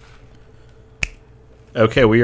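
A computer mouse clicks once.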